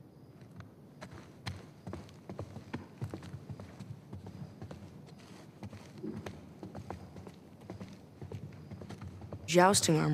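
Footsteps tap on a hard floor at a walking pace.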